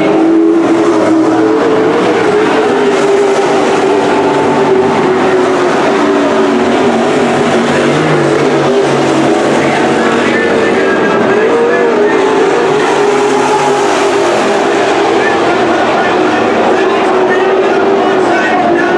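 Race car engines roar loudly around a dirt track.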